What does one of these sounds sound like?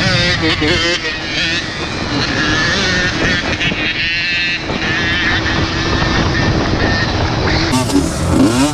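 A dirt bike engine revs loudly up close.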